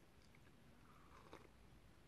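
A woman sips a drink.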